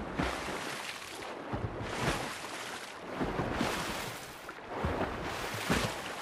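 Water splashes in rhythmic bursts as a swimmer strokes through it.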